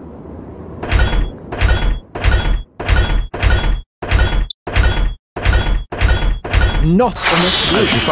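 Coins clink again and again in quick, even bursts.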